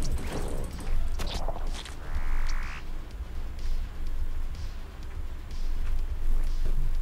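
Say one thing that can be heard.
Heavy footsteps thud steadily on a stone floor.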